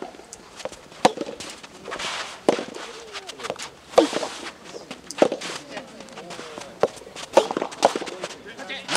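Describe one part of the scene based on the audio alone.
Tennis balls are struck sharply back and forth in a rally.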